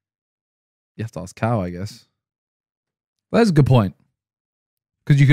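A man speaks into a microphone close by, in short bursts with animation.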